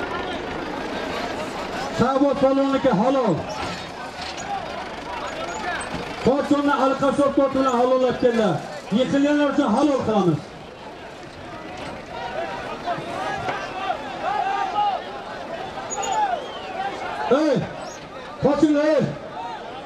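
A large crowd of men murmurs and calls out outdoors.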